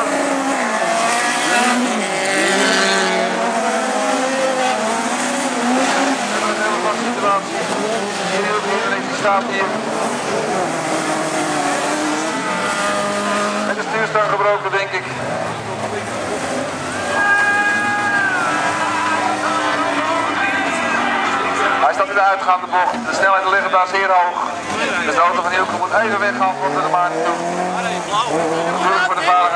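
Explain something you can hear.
Car tyres skid and spin on loose dirt.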